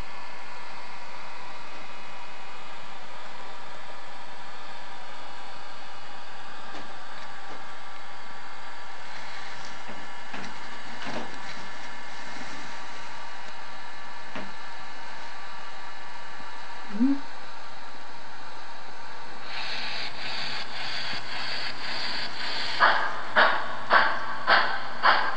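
A small electric motor of a model train hums steadily as the train rolls along the track.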